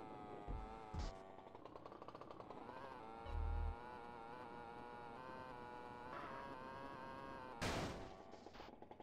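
A motorbike engine revs and hums.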